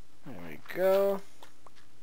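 A block of dirt crunches as it breaks.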